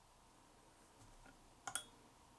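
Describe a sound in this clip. A metal needle taps sharply against a metal clamp.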